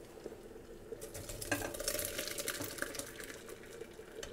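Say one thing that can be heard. Wet berries pour and splatter into a metal sieve.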